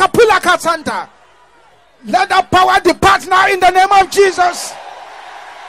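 A man speaks with energy through a microphone.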